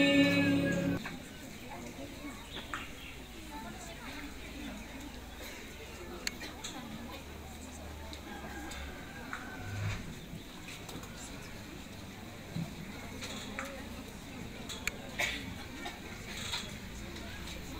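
A crowd murmurs quietly indoors.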